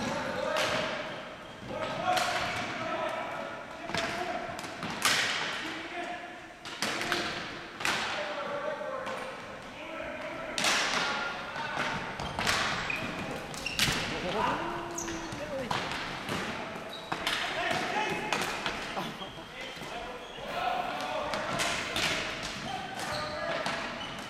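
Sticks clack and slap a ball across a hard floor, echoing in a large hall.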